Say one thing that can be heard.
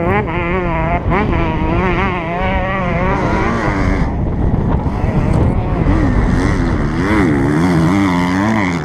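Enduro motorcycles rev hard in the distance as they climb a dirt hill.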